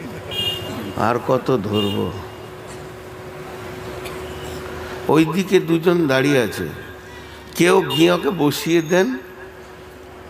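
A middle-aged man preaches with animation into a microphone, in sung, drawn-out phrases through a loudspeaker.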